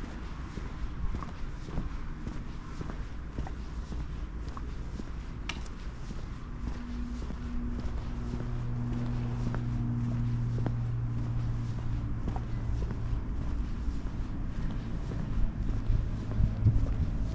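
Footsteps tap steadily on a paved sidewalk.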